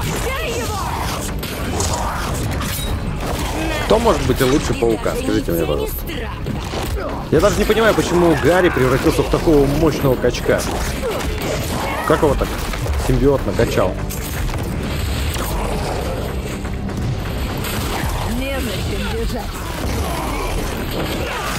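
Heavy punches and blows land with dull thuds.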